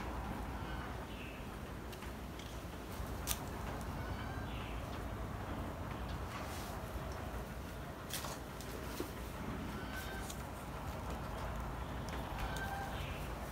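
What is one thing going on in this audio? Leaves rustle as gloved hands handle a small tree.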